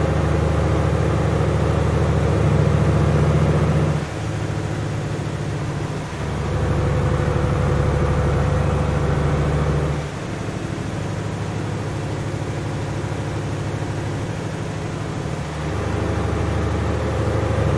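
A heavy truck engine drones steadily, rising and falling as it changes gears.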